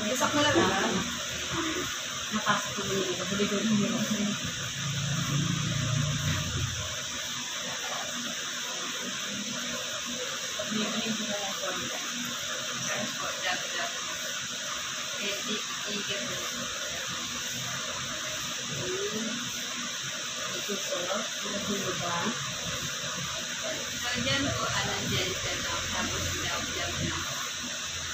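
A woman talks quietly nearby.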